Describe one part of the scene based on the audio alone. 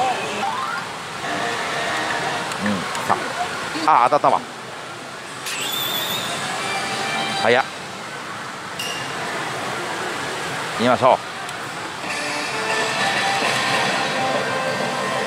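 A slot machine plays loud electronic music and jingles.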